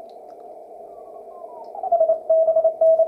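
A radio tone slides down in pitch as it is tuned in.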